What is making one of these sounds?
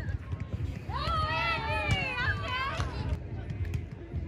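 Young women cheer and shout nearby.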